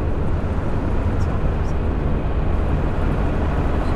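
A lorry rumbles past close by.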